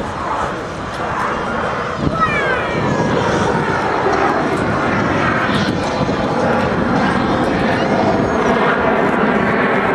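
Jet planes roar overhead, the rumble growing louder.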